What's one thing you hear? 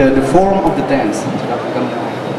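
A young woman speaks through a microphone in a large echoing hall.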